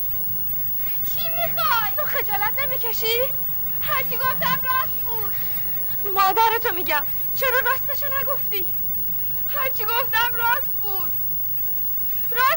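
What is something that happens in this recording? A young woman speaks pleadingly and tearfully up close.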